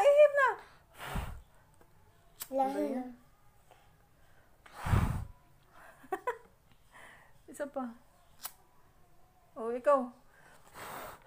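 A young child talks up close, in short bursts.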